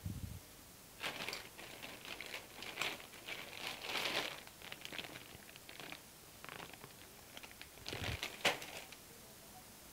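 Loose wires and test leads rustle and rattle as a hand moves them.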